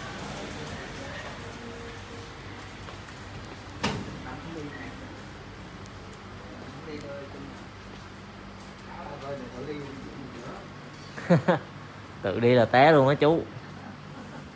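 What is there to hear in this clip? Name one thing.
Footsteps shuffle slowly across a hard floor.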